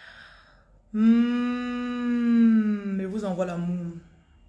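A woman sings a long, sustained note.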